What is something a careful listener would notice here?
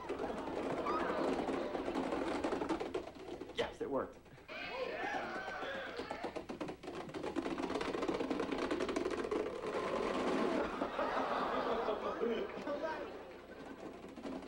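Plastic cases topple one after another in a long, rapid clattering chain.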